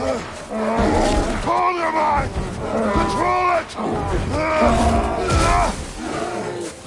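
A bear roars and growls loudly.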